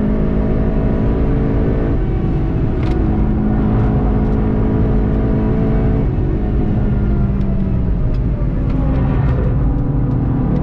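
A car engine roars loudly at high revs and shifts gear.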